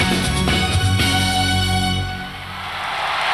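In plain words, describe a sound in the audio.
Music with a strong beat plays loudly and stops suddenly.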